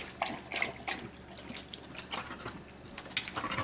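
A dog laps water from a bowl.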